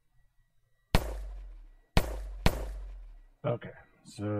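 A pistol fires single shots, each with a short low thud.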